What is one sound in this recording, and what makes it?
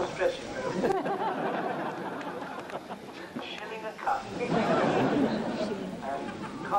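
A crowd of men and women chatters and talks nearby.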